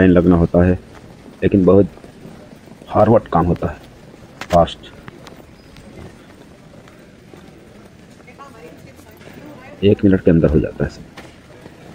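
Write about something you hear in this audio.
A man speaks close by in short bursts.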